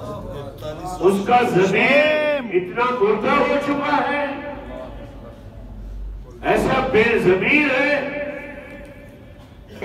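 A man speaks with animation through a microphone in a reverberant hall.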